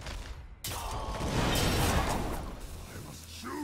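A loud magical whoosh bursts and fades.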